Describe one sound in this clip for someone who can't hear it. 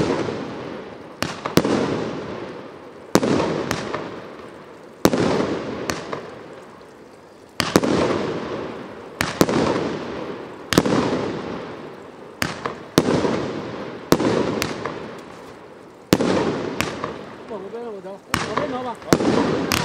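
Fireworks crackle and fizz after each burst.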